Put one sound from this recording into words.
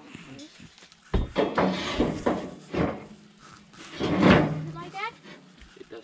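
A metal grill clanks as it is lifted.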